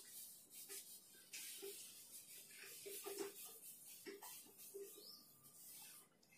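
A duster rubs softly across a whiteboard.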